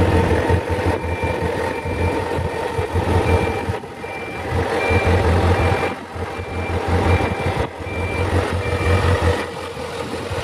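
A motorcycle's turn signal ticks in an even rhythm.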